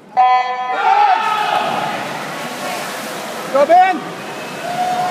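Swimmers dive in and splash through the water.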